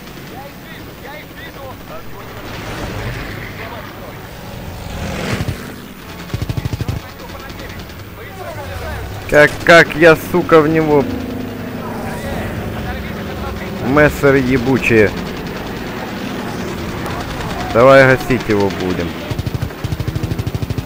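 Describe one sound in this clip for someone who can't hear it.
A propeller fighter plane's piston engine drones.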